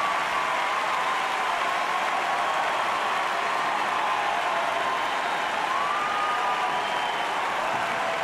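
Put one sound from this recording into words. A large crowd cheers and applauds loudly in a big echoing arena.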